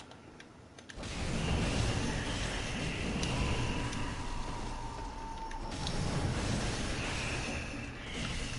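Fire crackles and roars.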